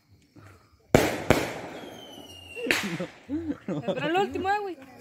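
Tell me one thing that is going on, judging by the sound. A firework bursts with a loud bang.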